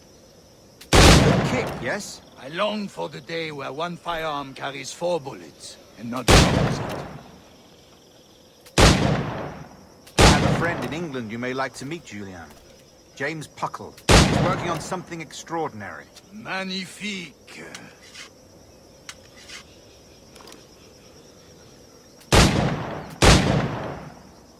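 Pistol shots bang loudly, one at a time, with pauses between them.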